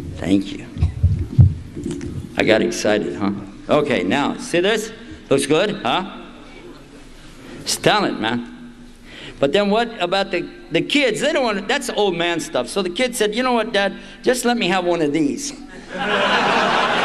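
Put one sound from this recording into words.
An elderly man speaks with animation into a microphone, heard through a loudspeaker.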